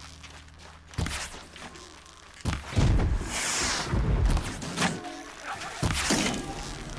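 An arrow whooshes off a bow.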